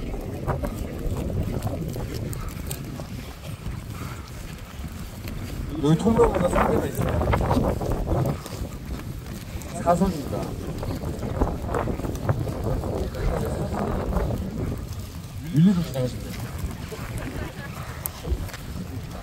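Wind blows into the microphone outdoors.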